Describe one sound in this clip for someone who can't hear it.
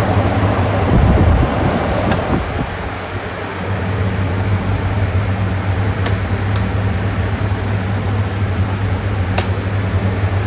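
A fan's control knob clicks as it is turned.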